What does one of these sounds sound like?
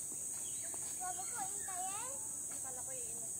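A young child calls out in a high voice nearby.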